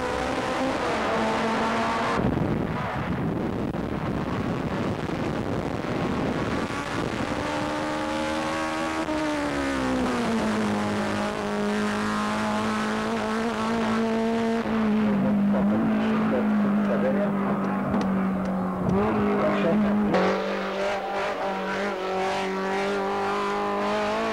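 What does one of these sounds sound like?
A racing car engine roars and revs.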